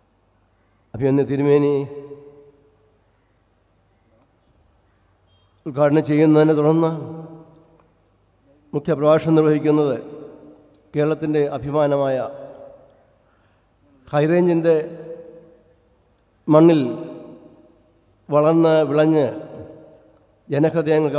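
An elderly man speaks slowly and deliberately through a microphone and loudspeakers, in phrases with pauses between them.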